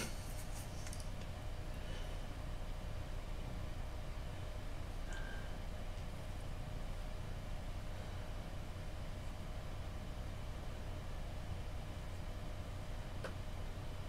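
A wooden tool scrapes softly on a carved figure.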